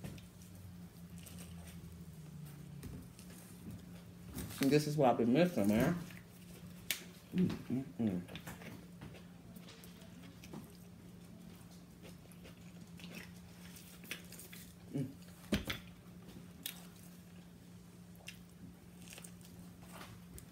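A young woman chews food noisily.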